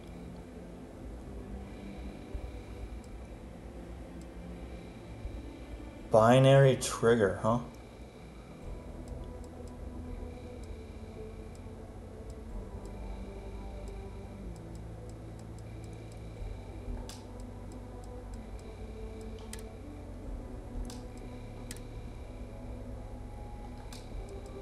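Soft electronic clicks tick now and then as menu items change.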